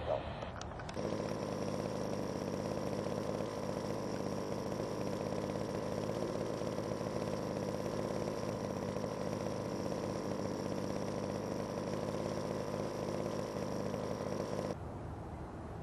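A small propeller plane's engine drones steadily nearby.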